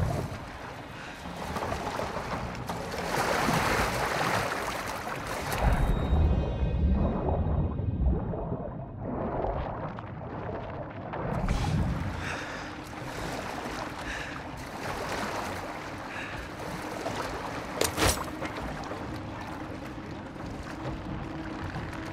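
Water sloshes and laps close by as a swimmer moves through it.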